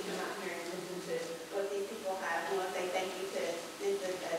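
A woman speaks with animation into a microphone in a large room.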